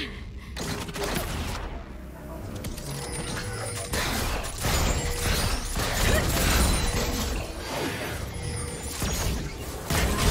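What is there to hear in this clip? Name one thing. Game spells and weapon hits crackle and clash in a rapid fight.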